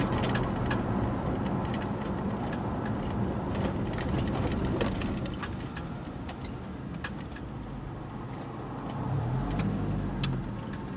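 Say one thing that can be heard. Traffic rumbles along the road outside.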